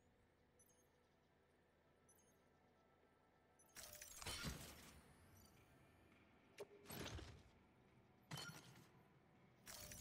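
Game menu beeps and clicks sound.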